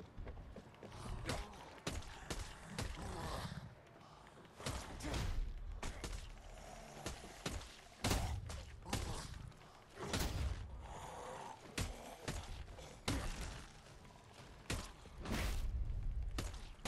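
Heavy punches thud repeatedly against a body.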